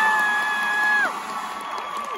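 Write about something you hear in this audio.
A large group of singers holds a loud final note together on stage.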